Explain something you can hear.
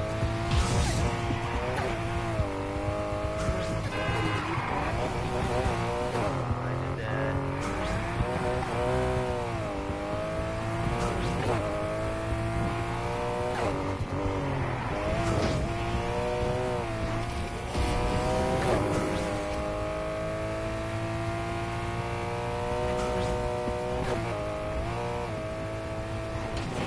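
A car engine revs high and shifts gears as it races.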